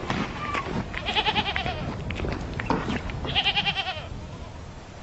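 Goats bleat close by.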